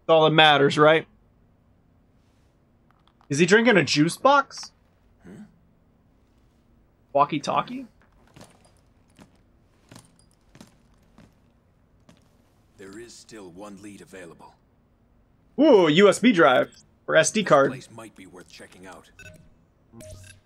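A man speaks in a low, calm voice with short pauses.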